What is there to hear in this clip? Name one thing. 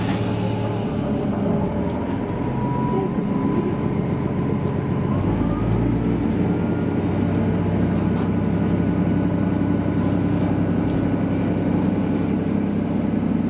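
A train's engine revs up and whines, rising in pitch as the train pulls away.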